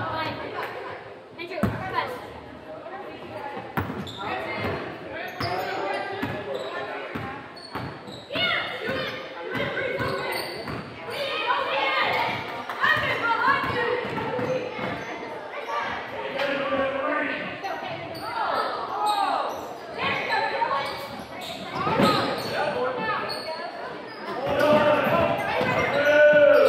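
Sneakers squeak sharply on a wooden floor in a large echoing gym.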